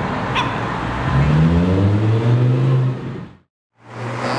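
A sports car engine revs up loudly, rising in pitch as the car pulls away.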